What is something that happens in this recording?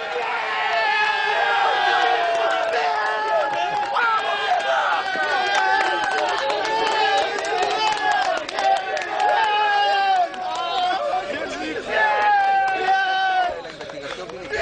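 Men shout and cheer excitedly outdoors.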